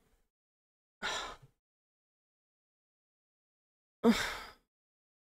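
A man mutters briefly into a microphone.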